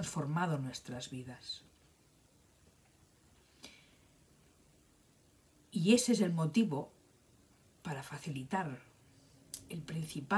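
An older woman speaks calmly and close to the microphone, in short bursts with pauses.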